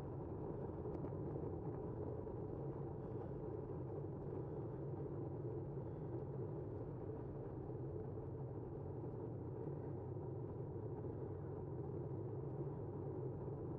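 Wheels roll steadily over rough pavement with a low rumble.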